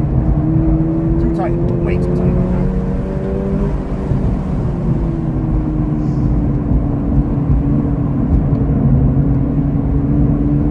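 Tyres rumble on asphalt.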